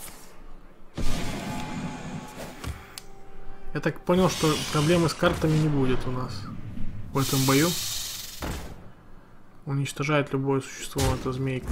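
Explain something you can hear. Game cards whoosh and clash with magical sound effects.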